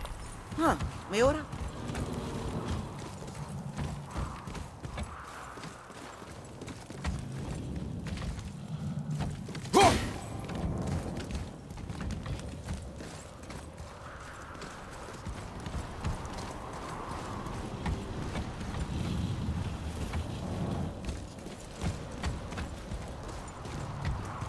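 Heavy footsteps crunch on snow and thud on wooden planks.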